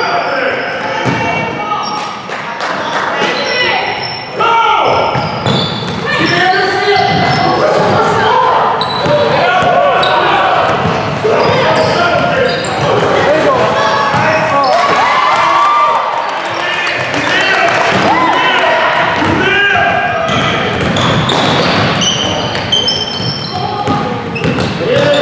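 Sneakers squeak sharply on a hard gym floor in a large echoing hall.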